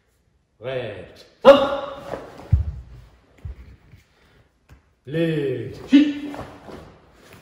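A man shouts short, sharp calls in an echoing hall.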